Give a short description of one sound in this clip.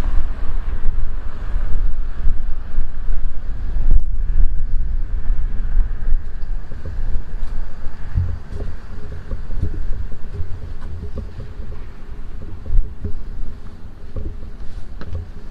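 Wind buffets the microphone outdoors with a low, gusty rumble.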